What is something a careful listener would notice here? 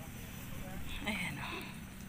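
Chickens cluck softly in the distance.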